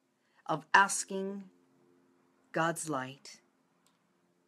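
A middle-aged woman speaks calmly and close to the microphone.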